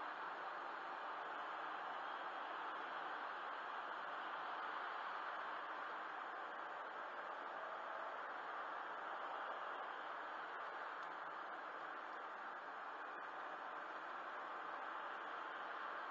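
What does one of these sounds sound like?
Tyres roar steadily on a motorway from inside a moving car.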